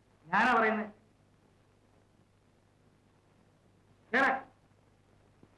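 A woman speaks briefly.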